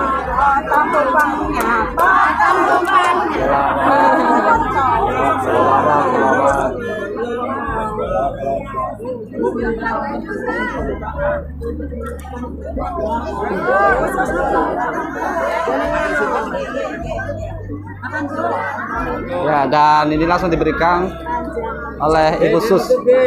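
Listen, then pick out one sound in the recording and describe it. A crowd of people chatter close by.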